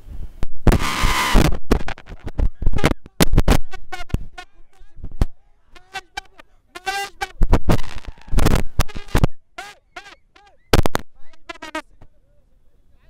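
A young man shouts excitedly into a microphone up close.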